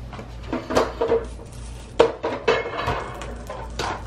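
Metal tongs clink against a metal basket.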